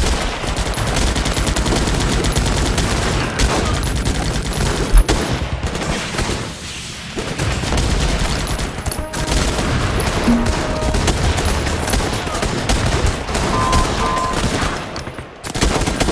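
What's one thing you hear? Rapid gunfire rattles on without a break.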